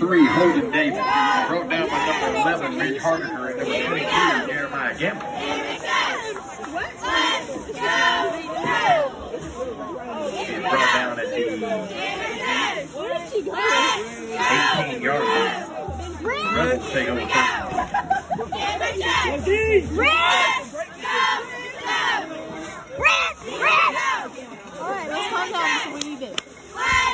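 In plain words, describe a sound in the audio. Young women cheer and shout nearby, outdoors.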